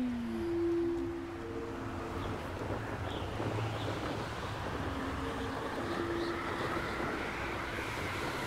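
Wind rushes steadily past a rider flying through the air.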